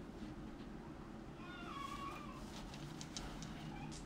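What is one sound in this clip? Clothing rustles softly as a top is lifted.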